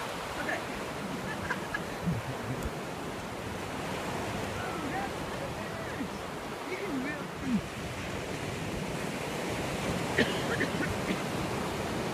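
Waves wash steadily onto a beach outdoors.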